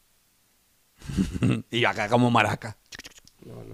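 A second man laughs and talks close to a microphone.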